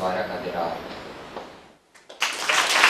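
A choir of young singers holds a final chord that fades away.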